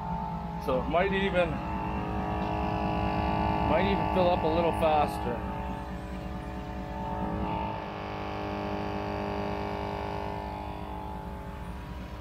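An air compressor buzzes steadily as it pumps up a tyre.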